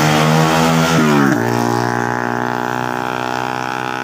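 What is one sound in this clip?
A motorcycle engine buzzes past.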